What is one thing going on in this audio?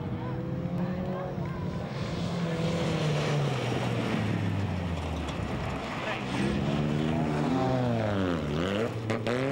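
Several race car engines roar at full throttle around a dirt track.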